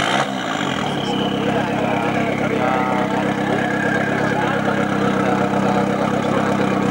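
A car engine idles with a steady rumble.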